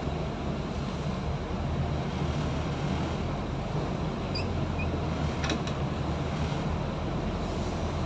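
A bus engine idles with a low, steady rumble as the bus pulls slowly away.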